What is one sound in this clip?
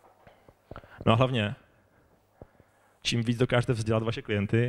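A man speaks calmly into a microphone over loudspeakers.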